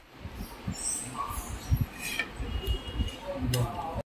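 A spoon scrapes and clinks against a metal pot.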